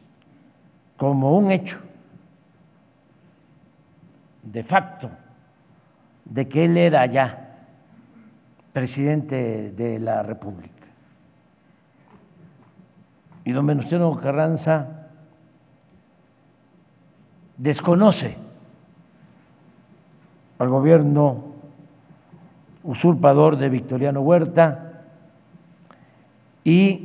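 An elderly man speaks slowly and deliberately through a microphone and loudspeakers, with long pauses between phrases.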